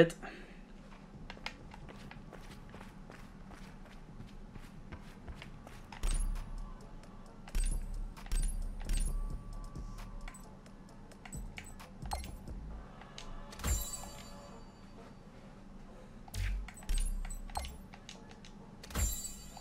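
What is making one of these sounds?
Short electronic menu clicks sound again and again.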